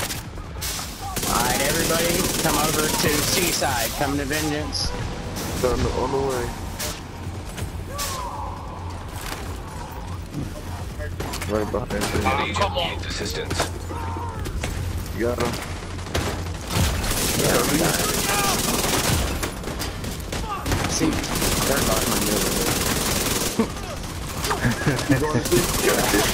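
Rifles fire in rapid bursts.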